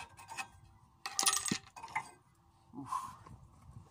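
Metal brake parts clink as they are handled.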